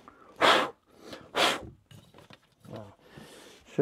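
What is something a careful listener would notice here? A man rummages and rustles through things up close.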